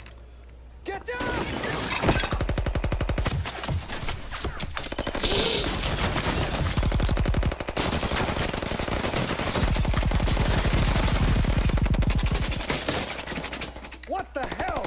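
Submachine guns fire in long rapid bursts.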